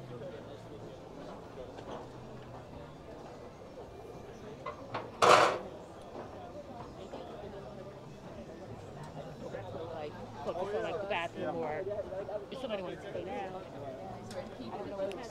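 A crowd of people chatter in the background outdoors.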